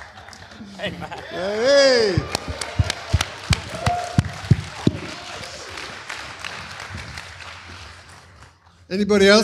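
A small audience claps.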